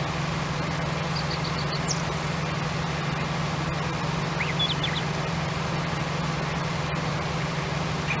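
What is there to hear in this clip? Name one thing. A harvester engine drones steadily.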